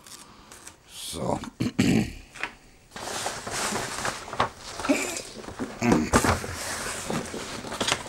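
Wrapping paper rustles and crinkles as it is unrolled and folded.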